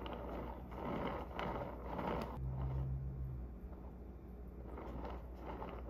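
A spatula scrapes and smooths soft frosting on a cake.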